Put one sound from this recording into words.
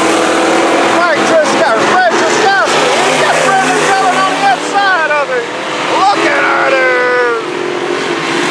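Race car engines whine and rev up and down close by.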